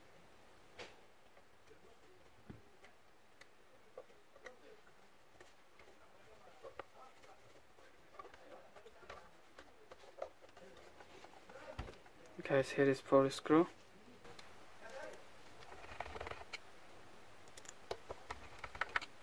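Hard plastic clicks and taps as a device is turned over in the hands.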